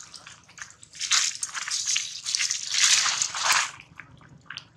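Dry leaves rustle and crunch as a baby monkey scurries over them.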